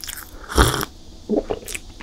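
A young woman sips a drink close to a microphone.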